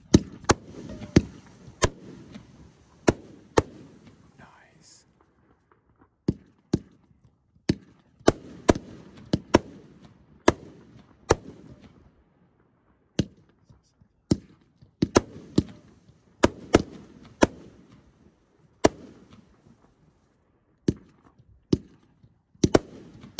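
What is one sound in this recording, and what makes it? Fireworks crackle and fizzle after bursting.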